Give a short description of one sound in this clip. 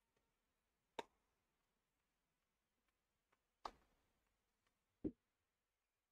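A tennis ball bounces sharply on a hard court.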